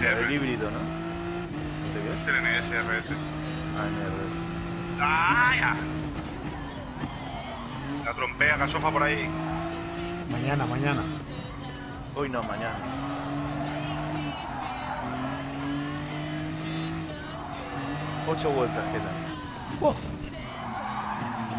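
A racing car engine revs up and down through gear changes.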